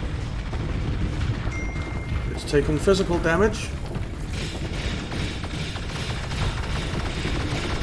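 Laser weapons zap and hum steadily.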